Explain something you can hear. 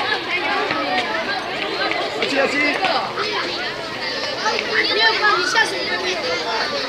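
A crowd of children and teenagers chatter and shout excitedly all around.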